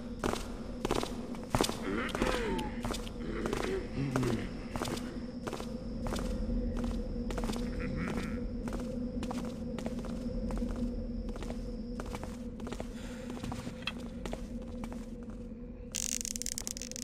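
Footsteps tread steadily on a stone floor, echoing slightly.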